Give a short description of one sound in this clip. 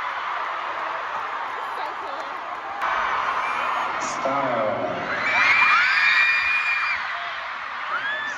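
A large crowd cheers and screams loudly in a vast echoing arena.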